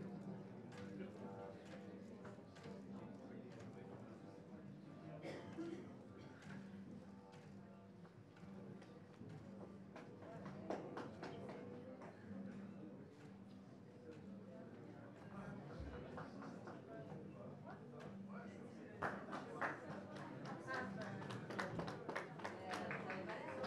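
An electric guitar plays sparse, twangy notes.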